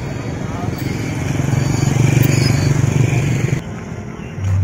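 Motor scooters pass close by with a buzzing engine hum.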